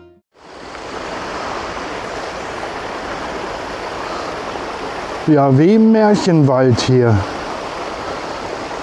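A small stream babbles and splashes over rocks.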